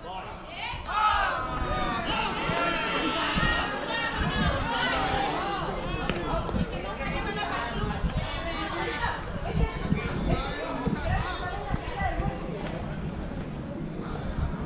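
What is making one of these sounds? Men talk and call out across an open field.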